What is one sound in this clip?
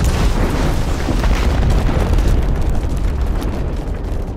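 Rocks and debris clatter as they fall.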